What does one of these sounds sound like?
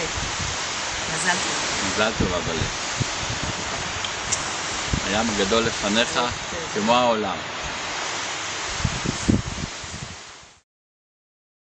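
Wind blows loudly across the microphone outdoors.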